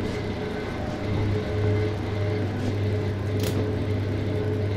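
Plastic strip curtain flaps rustle and slap as someone pushes through.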